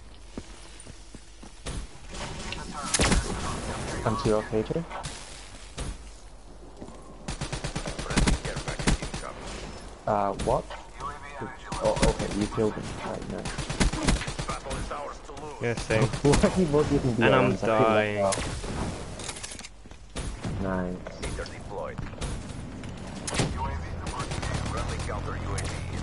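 Gunfire from a game rifle cracks in rapid bursts.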